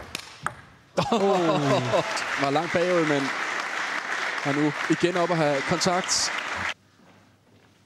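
A crowd cheers and shouts loudly.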